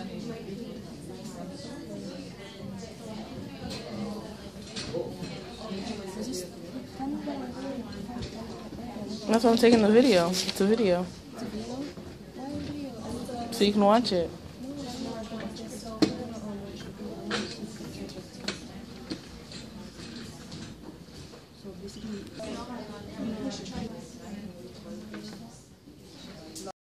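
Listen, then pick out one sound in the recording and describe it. A woman talks casually close by, her voice rising loudly at times.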